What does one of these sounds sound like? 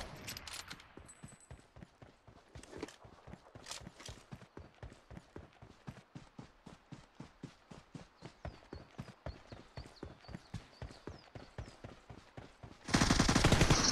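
Quick footsteps crunch over grass at a run.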